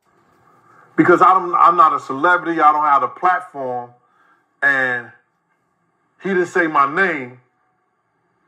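A middle-aged man speaks calmly and earnestly through a loudspeaker, with pauses.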